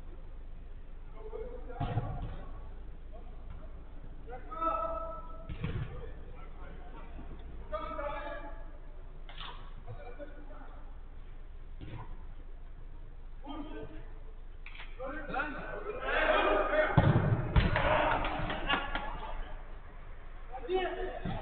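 Men shout and call out to each other across an echoing indoor pitch.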